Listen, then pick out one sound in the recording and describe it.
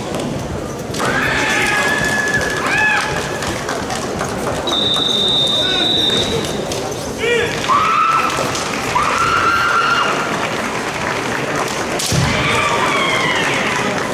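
Two young men shout long, piercing battle cries in a large echoing hall.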